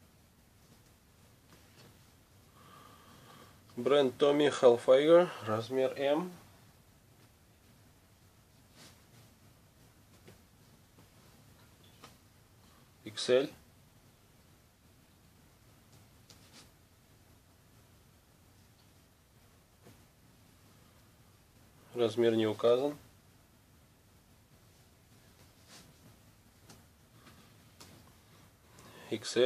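Fabric rustles softly.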